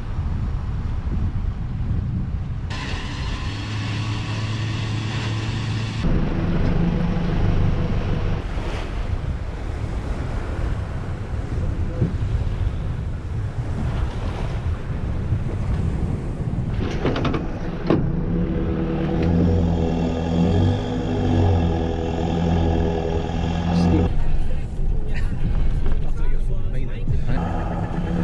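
A vehicle engine rumbles low and steady.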